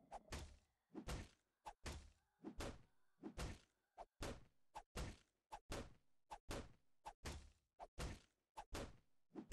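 Fists punch a wooden wall again and again in quick, heavy thuds.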